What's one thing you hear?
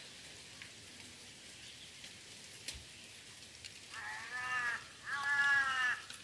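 Soft plant fibres rustle faintly as a hand pulls them from a stem.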